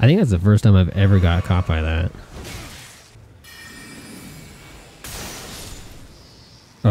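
A magical spell bursts with a shimmering whoosh.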